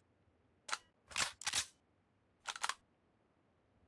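Gunshots ring out in short, sharp bursts.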